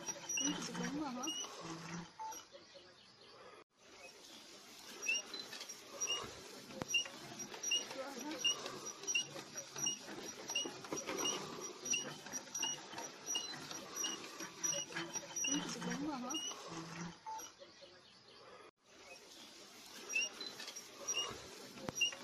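Soil grinds and scrapes around a turning auger.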